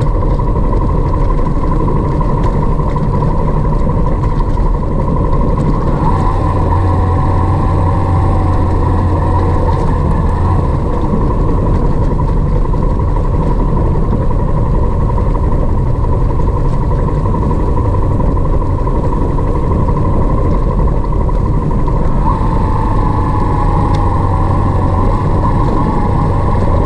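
Wind buffets loudly past the rider.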